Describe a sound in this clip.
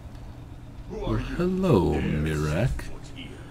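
A man speaks in a deep, echoing voice.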